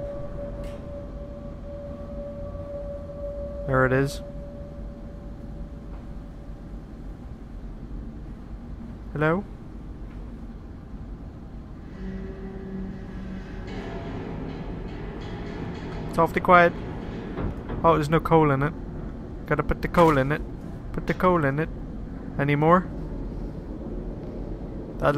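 Footsteps clank slowly on a metal floor.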